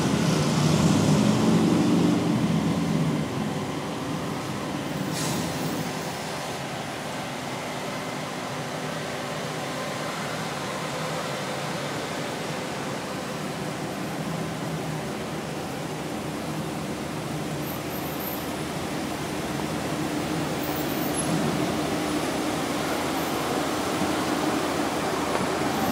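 Cars roll slowly past outdoors, their engines humming low.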